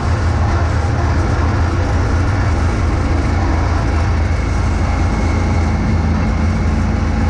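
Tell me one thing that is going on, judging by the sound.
A snowblower engine roars steadily up close.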